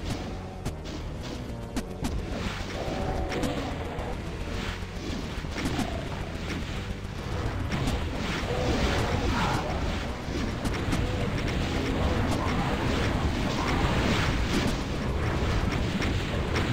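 A weapon fires repeatedly in rapid blasts.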